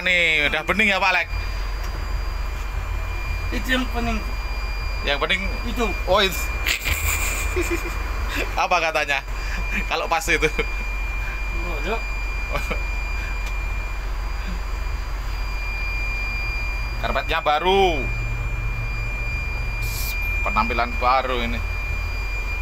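A man talks casually close by, in short bursts.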